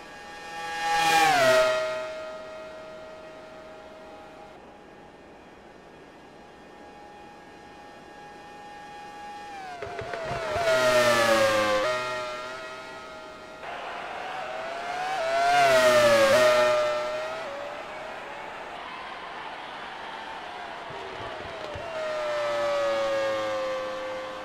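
A racing car engine screams past up close, rising and falling in pitch as it shifts gears.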